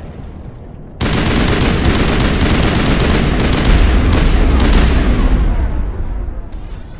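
A rifle fires in rapid bursts with loud blasts.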